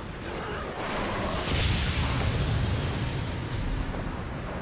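A loud explosion roars with a deep rumble.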